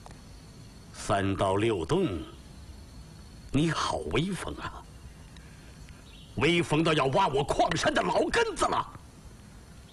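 A middle-aged man speaks sternly and forcefully, close by.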